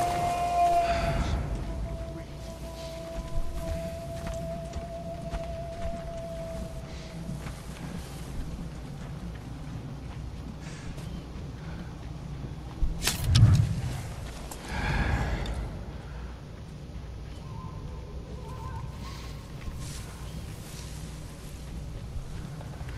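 Tall grass rustles as a figure creeps through it.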